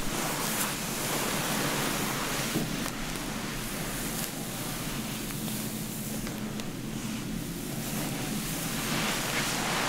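Fingers slide through wet hair with soft squelching sounds.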